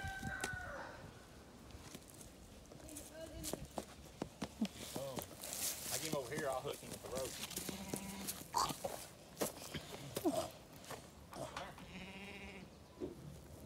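Small footsteps crunch on dry grass and dirt.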